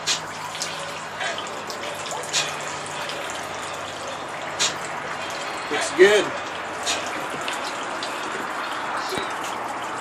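Water pours from a plastic container and splashes into water.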